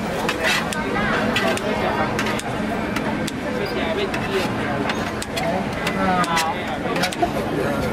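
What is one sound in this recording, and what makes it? Scissors snip through cooked squid.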